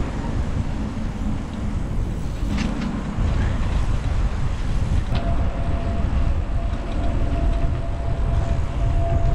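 Bicycle tyres roll on asphalt.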